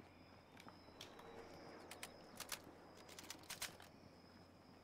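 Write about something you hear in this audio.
A rifle clicks and rattles as it is reloaded.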